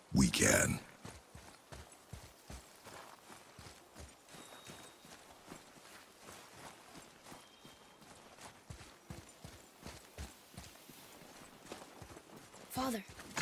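Footsteps crunch on snow at a steady pace.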